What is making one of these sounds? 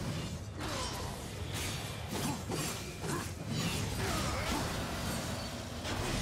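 Explosions boom and blades clash in a game's fight.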